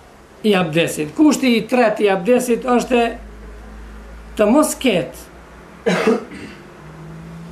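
A middle-aged man speaks calmly and close by, reading out in bursts with pauses.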